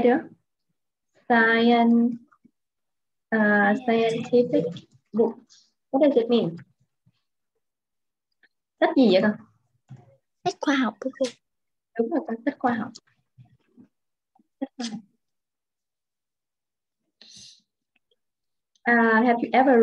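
A young woman speaks calmly into a microphone, explaining in short phrases with pauses.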